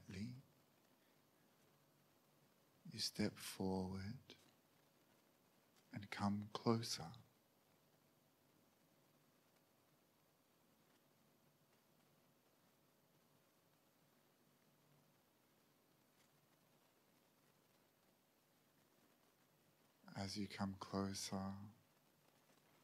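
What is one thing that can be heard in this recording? A man speaks calmly into a microphone in short phrases, with long pauses.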